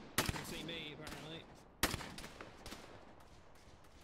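A rifle fires loud single shots that echo and fade.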